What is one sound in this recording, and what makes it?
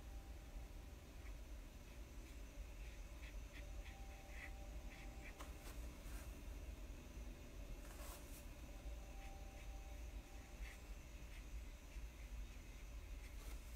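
A brush softly strokes paper.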